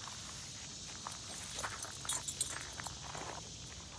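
Leaves rustle as a dog pushes through dense bushes.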